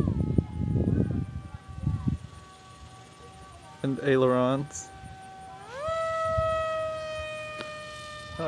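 A small model plane engine whines steadily overhead, its pitch rising sharply as it speeds up.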